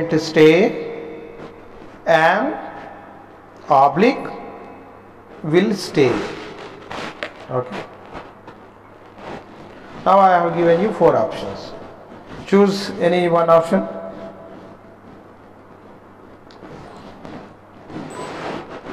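A man speaks slowly and clearly into a microphone, as if teaching.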